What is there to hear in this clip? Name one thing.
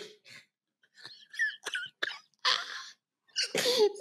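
A man laughs into a microphone over an online call.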